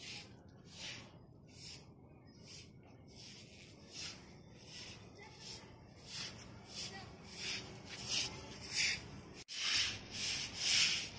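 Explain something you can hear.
Water splashes across a wet floor in repeated hissing bursts.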